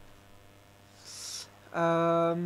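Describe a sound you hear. A man breathes in sharply close to a microphone.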